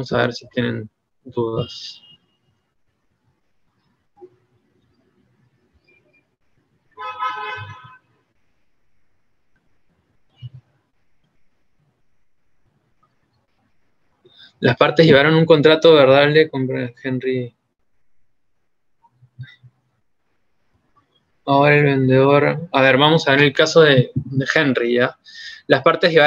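A young man speaks calmly over an online call, heard through a microphone.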